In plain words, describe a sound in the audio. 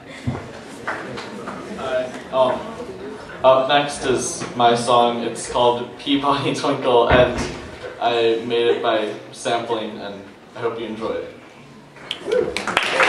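A young man speaks into a microphone over loudspeakers in an echoing hall.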